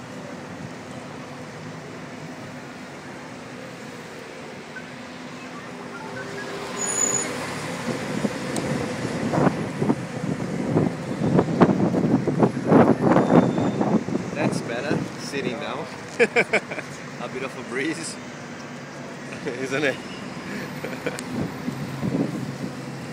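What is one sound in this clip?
A bus engine hums as the bus drives along.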